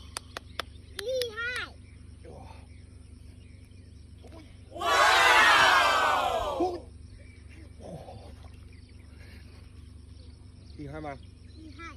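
A young boy speaks excitedly nearby.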